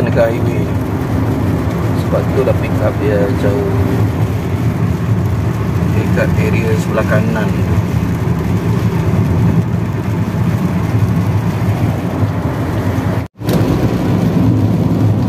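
A car drives on a wet road, heard from inside with a steady low rumble.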